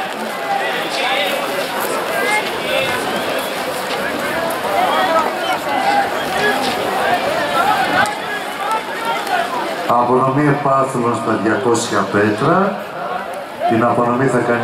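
A crowd of people chatter and call out outdoors.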